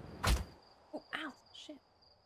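A young woman speaks briefly and casually into a nearby microphone.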